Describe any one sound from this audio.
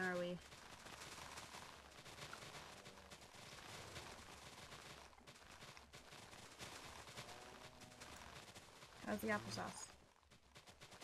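Grass rustles and crunches quickly as it is cut in rapid bursts.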